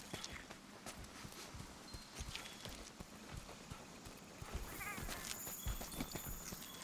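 Footsteps thud quickly across hard ground.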